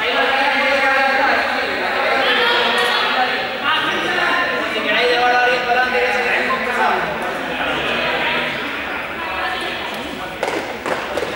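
A crowd of children shout and chatter in a large echoing hall.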